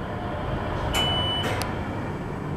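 An elevator chime rings once.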